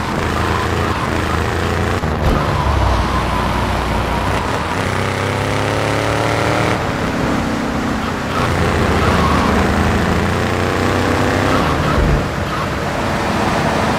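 A car engine revs hard and steadily as the car speeds along a street.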